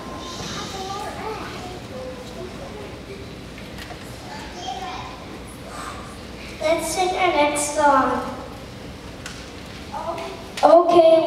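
A choir of young children sings together in a large echoing hall, growing louder partway through.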